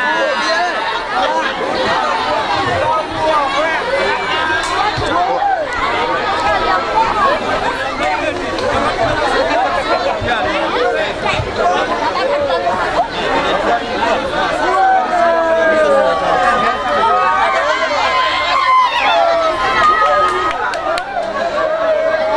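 A crowd of men and women talks loudly all around, outdoors.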